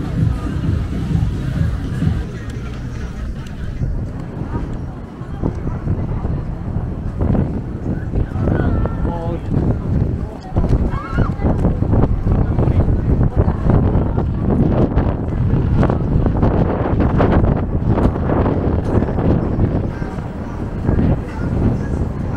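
A busy street murmurs steadily outdoors.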